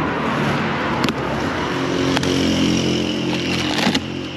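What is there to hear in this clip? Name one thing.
Cardboard box flaps rustle and snap as they are pulled open.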